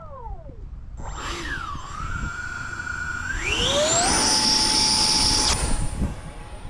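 A model jet engine whines, rising sharply in pitch as it speeds up.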